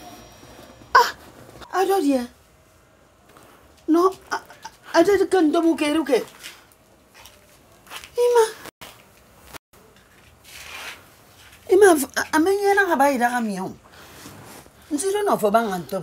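An older woman speaks firmly and close by.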